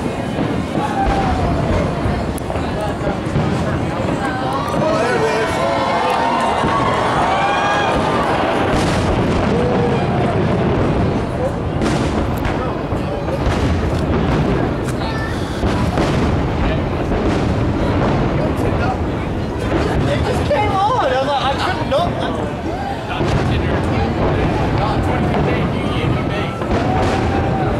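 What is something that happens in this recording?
A crowd of people cheers and chatters outdoors.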